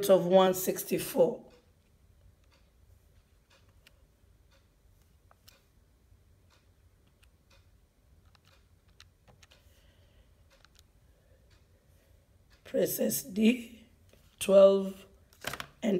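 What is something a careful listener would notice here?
Calculator buttons click softly as they are pressed.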